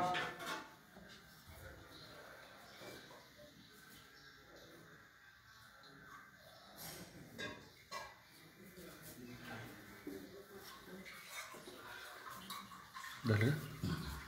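Metal vessels clink softly.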